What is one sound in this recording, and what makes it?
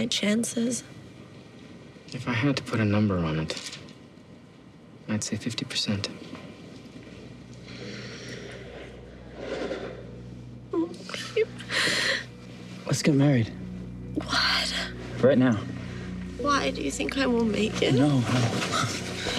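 A young woman speaks weakly and tearfully, close by.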